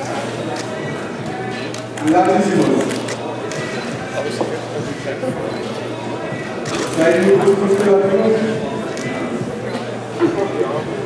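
A crowd of spectators cheers and shouts loudly in a large echoing hall.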